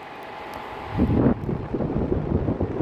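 An electric fan starts up and blows air with a low rushing whir.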